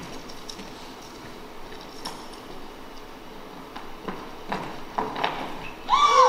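A young man and a young woman talk quietly in a large echoing hall.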